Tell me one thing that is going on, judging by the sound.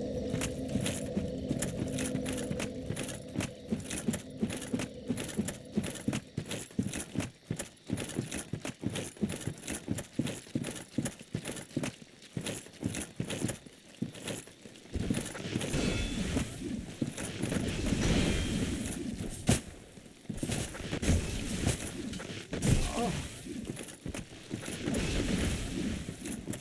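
Footsteps crunch quickly over rubble and undergrowth.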